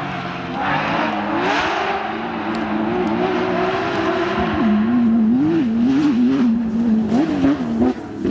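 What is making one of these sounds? Tyres crunch and spray gravel on a dirt track.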